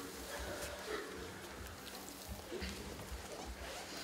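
A body slides across the floor.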